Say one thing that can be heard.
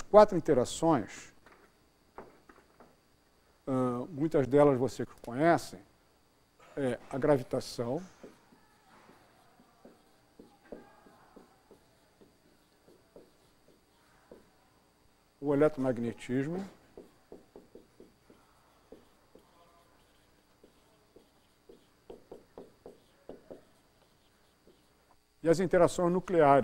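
An older man speaks to an audience, pausing often.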